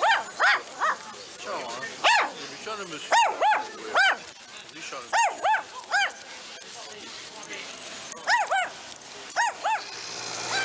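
A small dog barks repeatedly.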